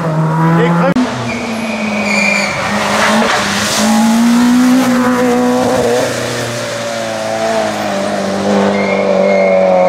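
A second rally car engine roars up the road and speeds away.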